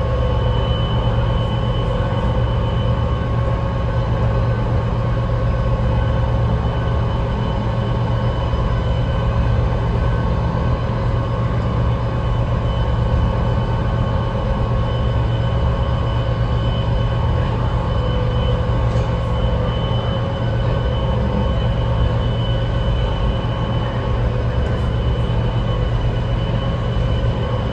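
A train car rumbles and hums steadily as it travels along the tracks.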